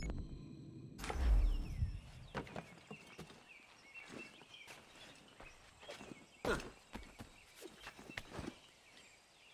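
Soft thuds and rustles sound as a character climbs and jumps.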